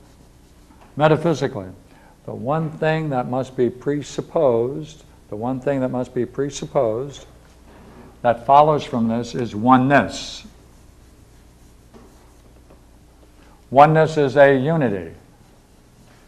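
An elderly man speaks calmly, as if lecturing.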